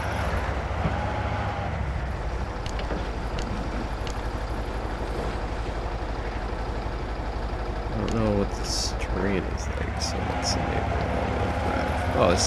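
A heavy truck engine rumbles steadily as the truck drives.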